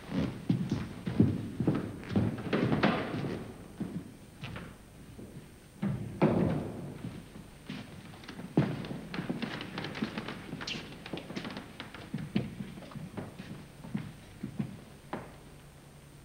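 An elderly man speaks firmly, close by.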